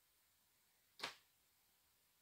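A cabinet door clicks shut.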